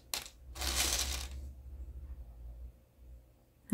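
Plastic beads rustle and click softly as thread is pulled through them.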